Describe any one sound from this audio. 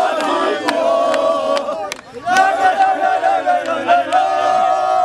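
Men clap their hands in rhythm.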